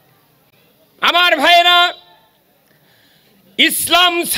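An elderly man chants loudly and passionately into a microphone, heard through loudspeakers.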